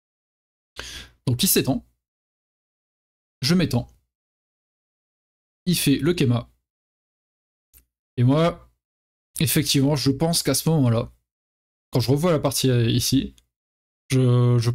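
A young man speaks calmly in short phrases, close to a microphone.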